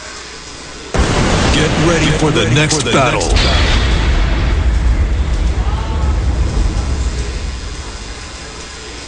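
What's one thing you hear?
A loud whooshing game sound effect bursts in and slowly fades.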